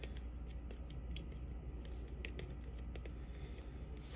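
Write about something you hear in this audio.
Small plastic dials on a combination lock click softly as they are turned.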